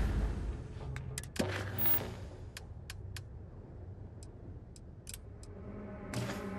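Short menu clicks sound as items are selected.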